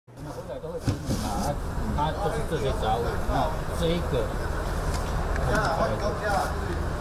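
A man speaks calmly and explains, close by.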